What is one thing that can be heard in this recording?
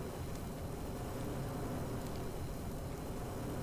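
Burning wood crackles and pops.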